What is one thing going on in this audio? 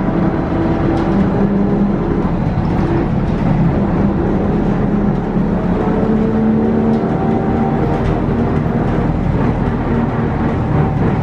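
A bus engine hums and whines steadily from inside, changing pitch as it speeds up and slows.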